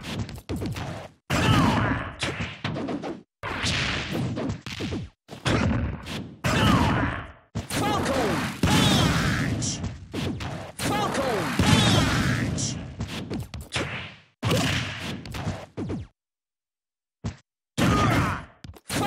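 Punches and kicks land on a sandbag with heavy thuds and smacks.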